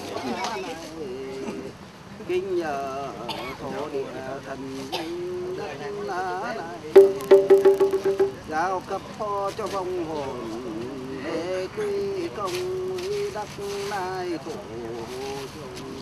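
An elderly man chants steadily through a microphone.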